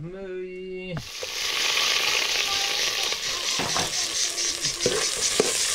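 Water boils and bubbles vigorously in a pot.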